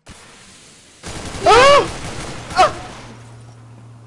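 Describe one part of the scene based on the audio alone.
A rifle fires several shots.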